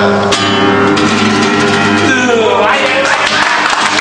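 An acoustic guitar is played.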